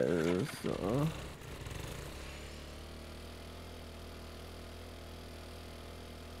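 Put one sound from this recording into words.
A small motorbike engine hums steadily.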